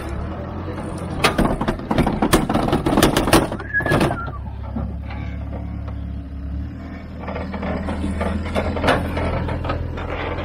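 Tyres grind and crunch over rock.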